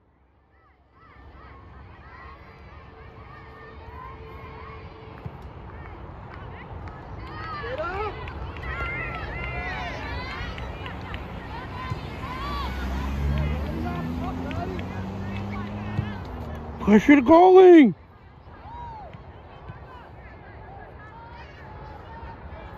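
Spectators shout and cheer outdoors at a distance.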